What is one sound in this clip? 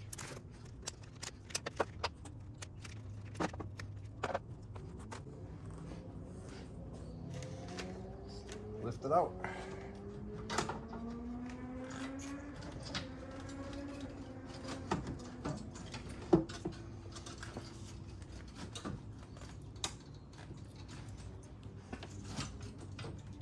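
Metal tools clink and knock against engine parts.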